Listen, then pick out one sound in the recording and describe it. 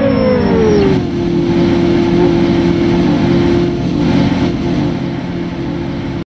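A car engine idles steadily.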